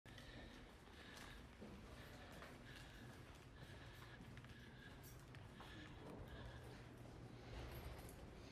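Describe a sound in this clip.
Footsteps tap along a hard floor indoors.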